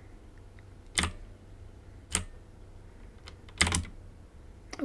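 A short game sound effect plays as items are picked up.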